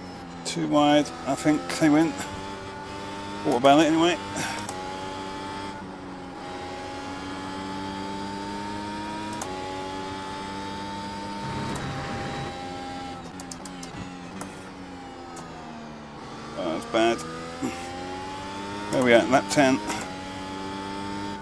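A racing car engine drones steadily and shifts through gears.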